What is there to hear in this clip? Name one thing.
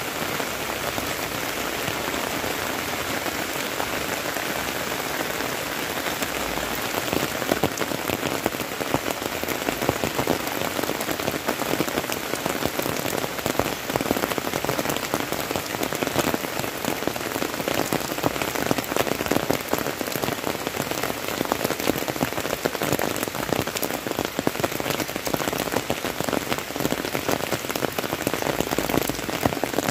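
Steady rain falls outdoors, pattering on leaves and a wet road.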